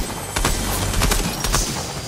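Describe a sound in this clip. A chest opens with a bright magical chime.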